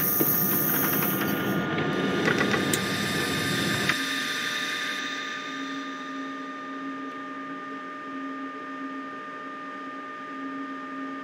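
An electric train's engine hums steadily while standing still.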